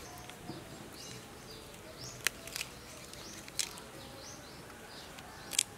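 Crisp lettuce leaves crunch and rustle as hands fold them.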